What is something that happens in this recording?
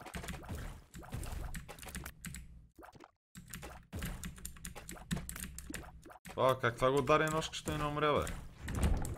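Quick game shooting and splatter effects play.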